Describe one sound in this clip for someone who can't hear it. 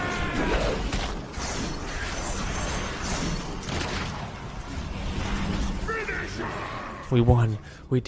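Spell effects crackle and whoosh in a busy fantasy battle.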